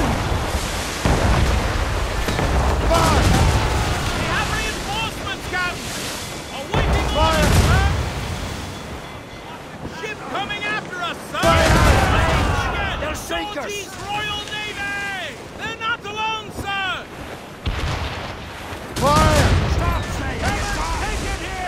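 Sea waves crash and churn against a ship.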